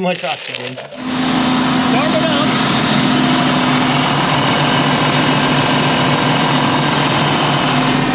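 A large diesel engine runs with a loud, steady rumble.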